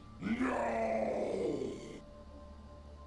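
A deep, monstrous male voice shouts menacingly.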